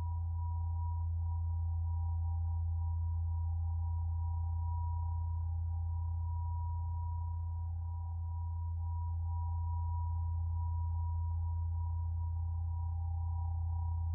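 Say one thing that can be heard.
A synthesizer drones with a deep, steady hum and a soft high tone.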